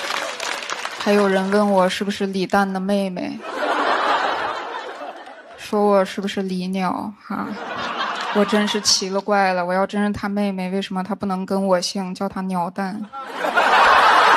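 A young woman speaks into a microphone with comic timing, heard through loudspeakers.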